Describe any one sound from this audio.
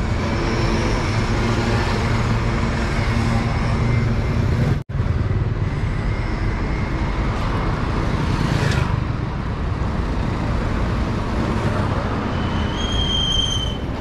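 Cars drive past on a busy street.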